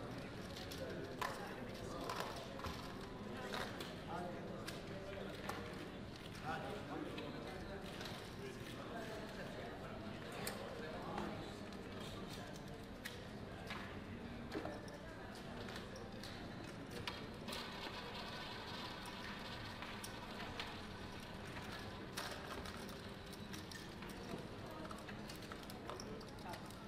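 Casino chips clack and click as they are stacked and pushed across a table.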